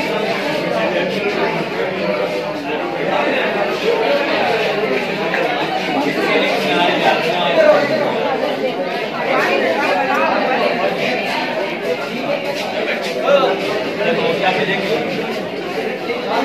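A crowd of young men and women chatters all around, close by, in an echoing room.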